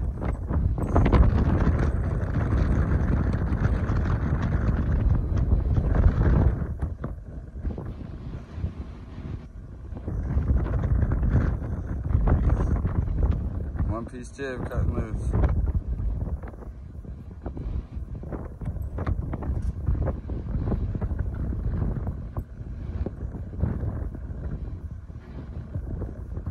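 Wind gusts and buffets loudly outdoors at height.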